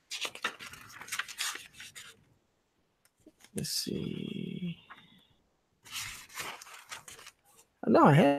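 Paper pages rustle and flap as they are flipped by hand.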